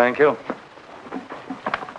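A man speaks cheerfully and close by.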